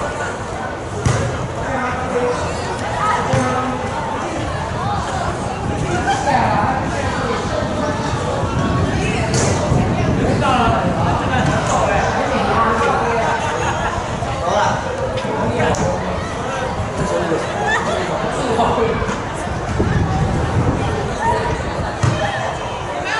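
A crowd of children chatters nearby outdoors.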